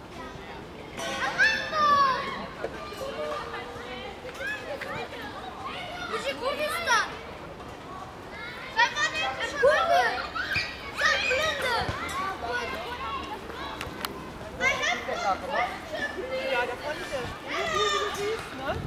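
Children and adults call out to each other outdoors, some way off.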